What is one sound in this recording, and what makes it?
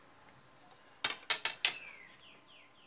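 A plastic ruler clatters down onto a table.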